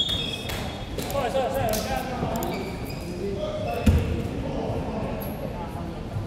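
Players call out to each other in an echoing hall.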